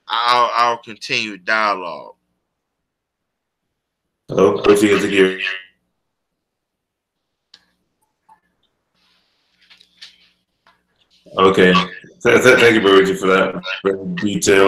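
A middle-aged man speaks calmly over an online call, in bursts with pauses.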